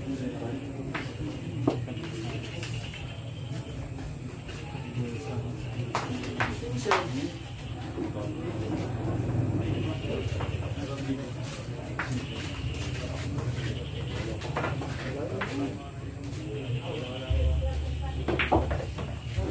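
Pool balls clack sharply against each other.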